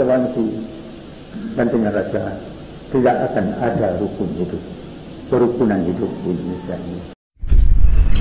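An elderly man speaks calmly into a microphone in a slightly echoing room.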